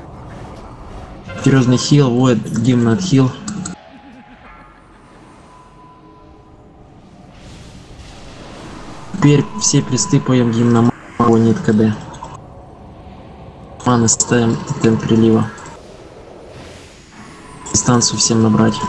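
Magic spells crackle and burst in a fantasy battle.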